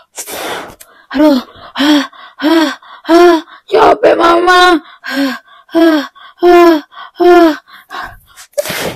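A young woman sings or calls out in short, high, drawn-out notes close by.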